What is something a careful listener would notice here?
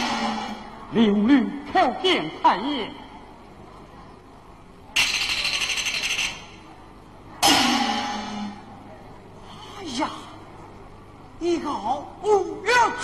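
A man declaims in a high, sliding stage voice.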